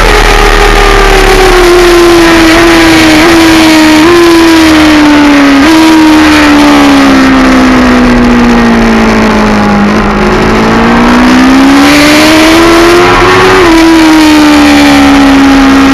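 A motorcycle engine roars loudly up close, dropping in pitch through downshifts and then rising again as it accelerates.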